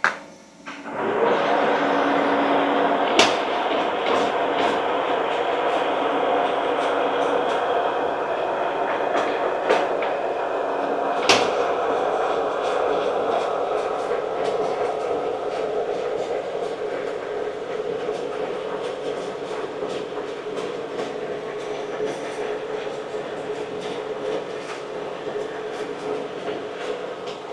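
A milling machine cuts metal with a loud, steady grinding whir.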